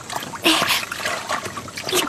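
Water splashes out of a wooden bucket as it is carried.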